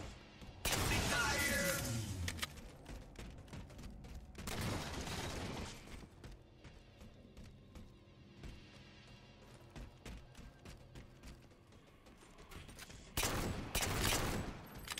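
Gunshots from a game fire in loud, sharp bursts.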